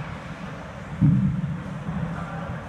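A rubber balance ball thumps down on a padded floor.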